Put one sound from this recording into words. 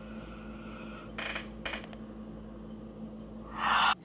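A young woman yawns loudly.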